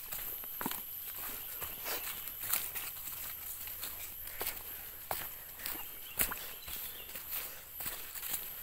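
Footsteps crunch and rustle on dry leaves and twigs.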